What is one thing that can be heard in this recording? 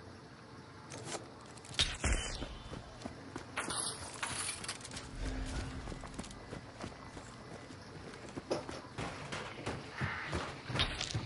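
Footsteps crunch on gravel and wooden boards.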